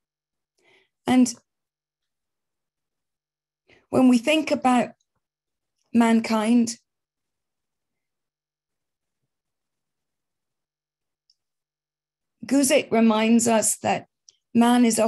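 A middle-aged woman speaks calmly and slowly, close to a microphone, in short bursts with long pauses.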